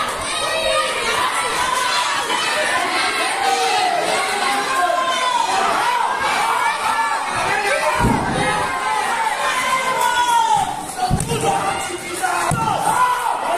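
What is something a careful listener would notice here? A crowd shouts and cheers loudly throughout.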